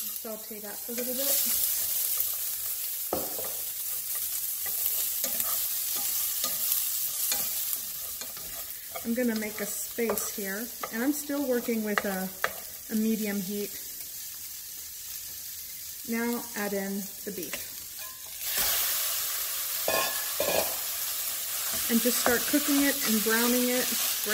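A wooden spoon scrapes and stirs inside a pot.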